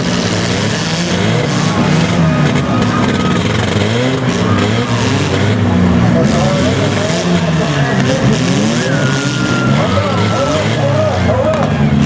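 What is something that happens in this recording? A large crowd cheers in the distance.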